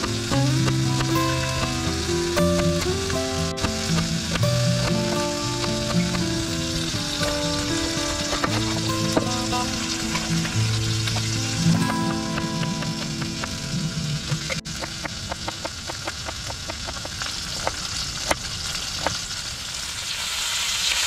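A knife chops vegetables on a wooden board with sharp taps.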